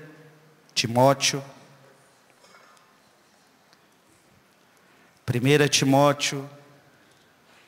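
A man speaks slowly and calmly into a microphone in a large echoing hall.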